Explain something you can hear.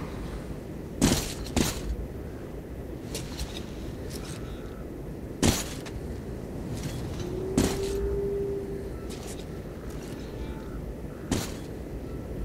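Gunshots crack out one at a time, with a short echo.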